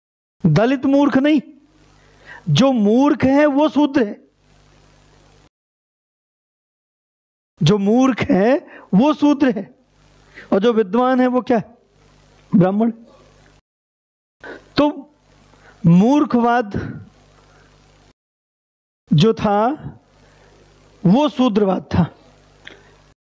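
A man lectures with animation through a headset microphone, in bursts with pauses.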